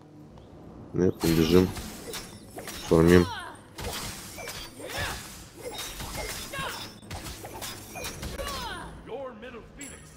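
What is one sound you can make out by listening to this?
Weapons strike and magic blasts burst in a fast fight.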